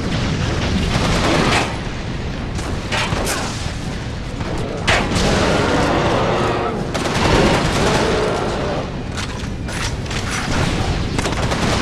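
An explosion booms with a deep roar.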